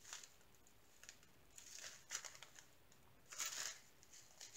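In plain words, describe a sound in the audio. Beads shift and rattle inside a plastic bag.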